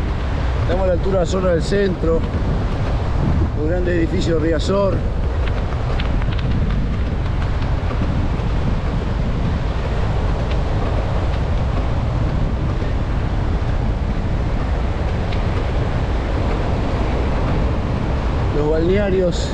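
Waves wash and break steadily on the shore.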